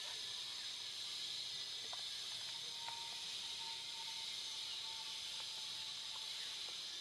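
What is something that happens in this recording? Young monkeys rustle the leaves close by.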